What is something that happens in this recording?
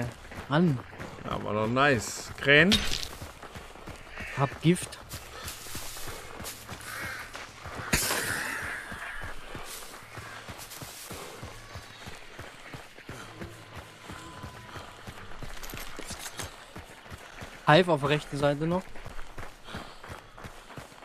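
Footsteps rustle through tall grass and brush.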